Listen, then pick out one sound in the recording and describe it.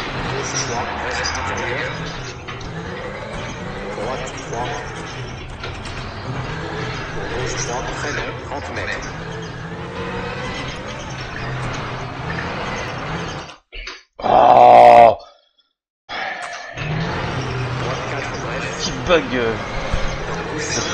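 A man speaks with animation close to a headset microphone.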